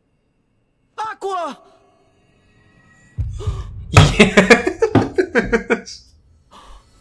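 A young man cries out with strain.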